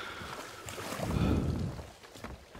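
Water sloshes in a wooden bucket.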